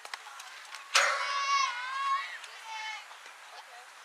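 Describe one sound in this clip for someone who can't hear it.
Young girls cheer and shout loudly outdoors.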